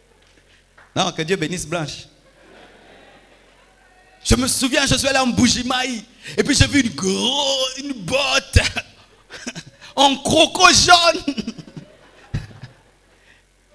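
A man preaches with animation through a microphone in a large echoing hall.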